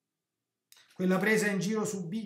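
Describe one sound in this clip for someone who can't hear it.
A middle-aged man speaks calmly and closely into a microphone.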